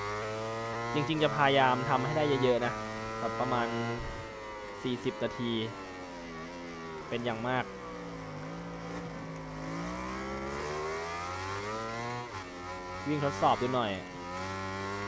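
A motorcycle engine pops and crackles as the gears shift down.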